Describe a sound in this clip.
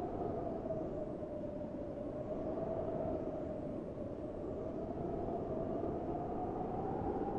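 Rain falls steadily outdoors with a low rumble.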